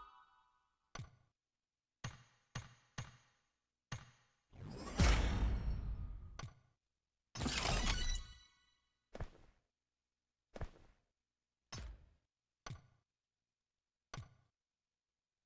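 Game menu taps chime one after another.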